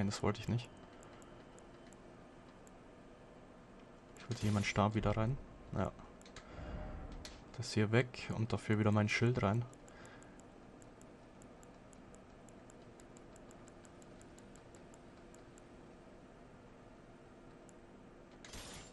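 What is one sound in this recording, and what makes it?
Soft video game menu ticks sound as an item list is scrolled.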